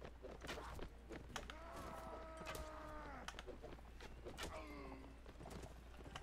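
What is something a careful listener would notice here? A sword swings and strikes.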